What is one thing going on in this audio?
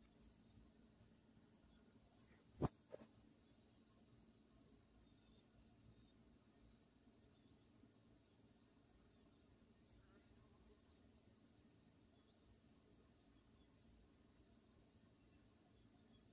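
An outdoor air conditioning unit hums steadily.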